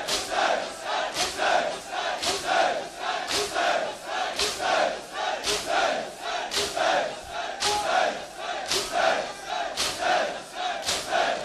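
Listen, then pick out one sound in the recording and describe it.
Many bare chests are struck by hands in a steady rhythm.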